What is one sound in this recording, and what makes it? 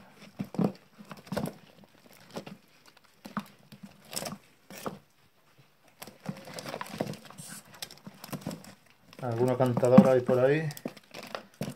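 Pieces of bark knock and scrape together.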